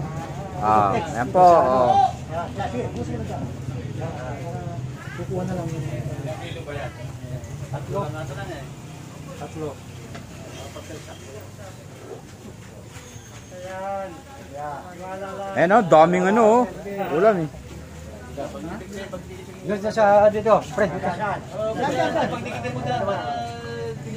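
Several adults talk nearby in a lively way, with a man and a woman speaking loudly.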